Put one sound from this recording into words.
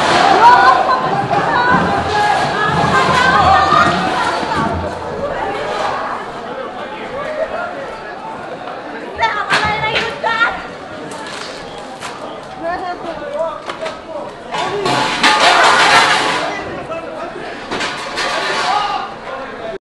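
Boots shuffle and scuff on stone as a group moves through a narrow echoing lane.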